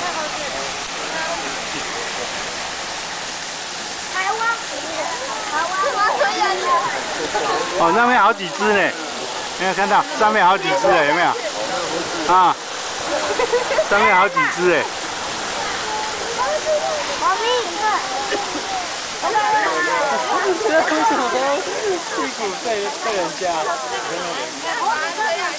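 A crowd of visitors chatters nearby.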